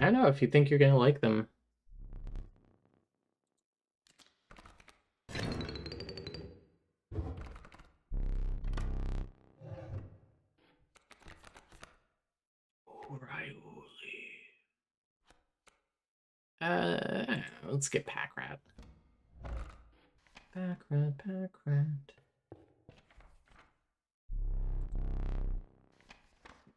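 A young woman talks with animation into a close microphone, in bursts.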